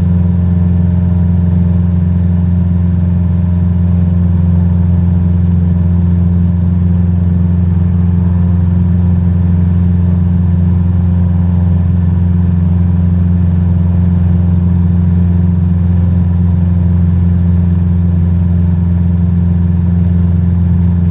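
A small propeller plane's engine drones steadily and loudly.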